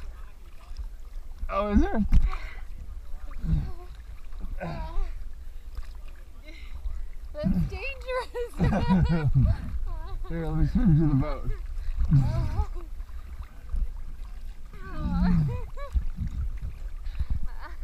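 Waves slosh and lap against a floating swimmer.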